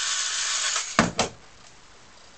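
A screwdriver clatters down onto a wooden table.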